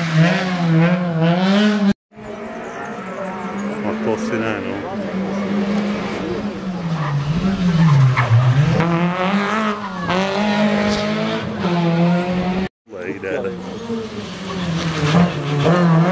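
A rally car engine roars and revs hard as the car speeds past close by.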